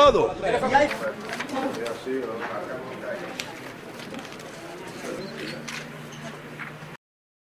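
Paper rustles as pages are leafed through.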